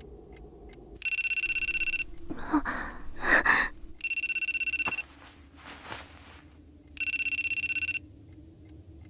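A phone beeps in short repeated bursts.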